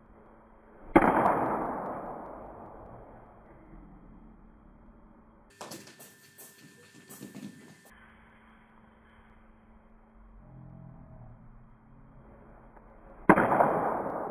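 A bat hits a ball with a sharp crack that echoes through a large hall.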